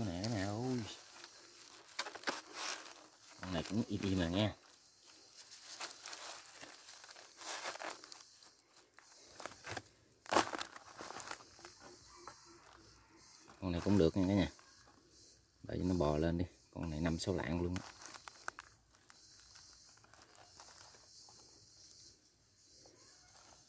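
A wire mesh trap rattles and scrapes as it is handled.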